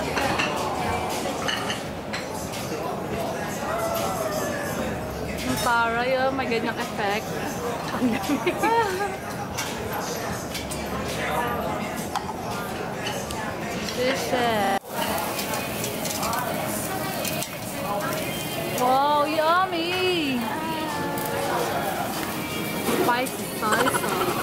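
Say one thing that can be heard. A murmur of many voices fills a busy room.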